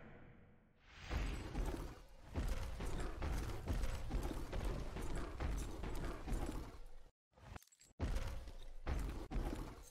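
Footsteps thud steadily on icy ground.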